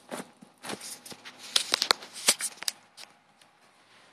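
Fabric rustles and scrapes up close in quick bursts.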